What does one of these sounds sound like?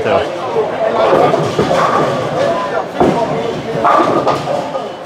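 A crowd of men and women chatter loudly in an echoing hall.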